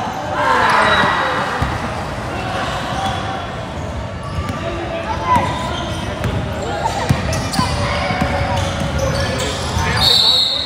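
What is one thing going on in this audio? A basketball bounces on a wooden floor with hollow thuds.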